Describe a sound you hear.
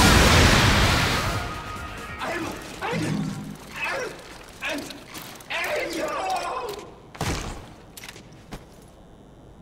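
A sword slashes and strikes with loud swooshing hits.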